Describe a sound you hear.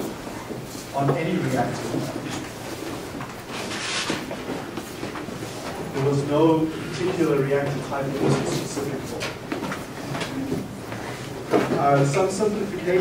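A man speaks out loud from the front of a room, heard from a distance.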